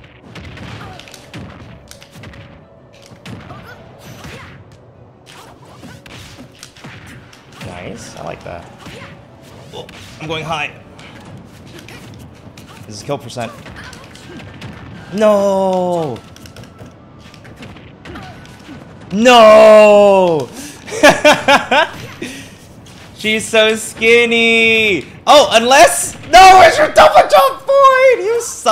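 Video game fighters hit each other with punchy, whooshing effects.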